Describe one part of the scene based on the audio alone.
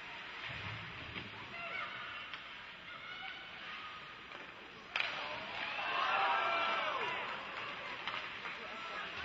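Skates scrape across the ice in a large echoing arena.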